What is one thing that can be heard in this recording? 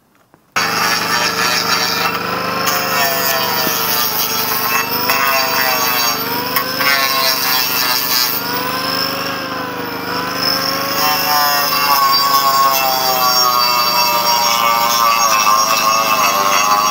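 An angle grinder whines as it sands carved wood.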